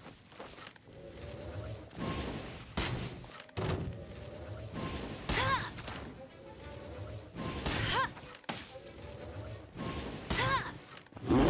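A bow twangs as arrows are loosed in quick succession.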